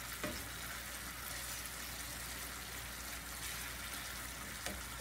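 A spatula scrapes and taps against a pan.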